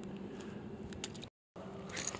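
A small fish splashes into calm water.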